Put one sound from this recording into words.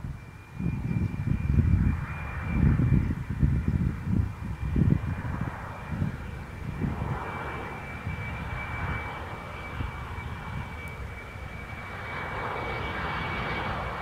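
A jet airliner's engines whine and roar steadily, growing louder as it approaches.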